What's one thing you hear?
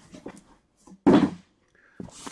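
A cardboard box thumps down onto a table.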